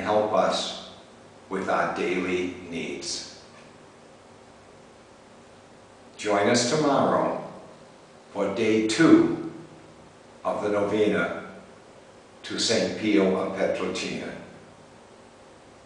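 An elderly man speaks calmly and slowly, close by, with pauses between phrases.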